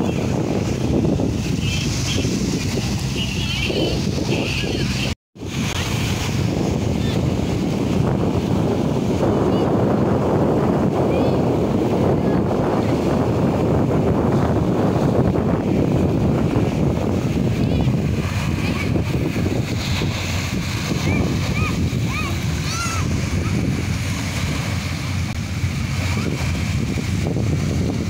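Wind blows hard across an open shore.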